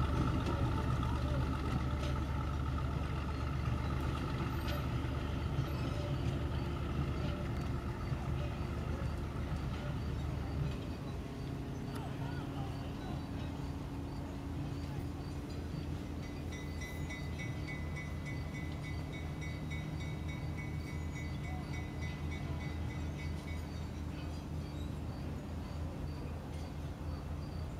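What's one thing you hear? A diesel locomotive engine rumbles steadily nearby and slowly grows quieter as it pulls away.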